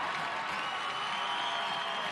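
Young women shout and cheer excitedly close by.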